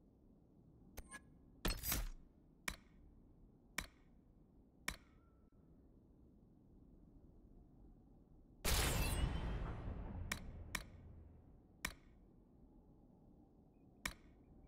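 Short interface clicks sound as menu selections change.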